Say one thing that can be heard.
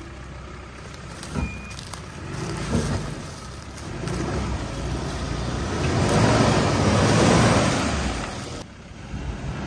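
Tyres churn and splash through thick mud.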